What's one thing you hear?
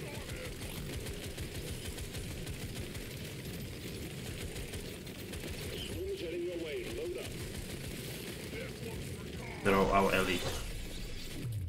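A man talks casually close to a microphone.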